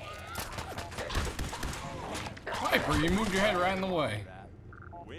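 A heavy gun fires rapid bursts.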